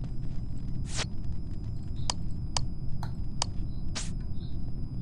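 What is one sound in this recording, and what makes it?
Switches click sharply as they are flipped, one after another.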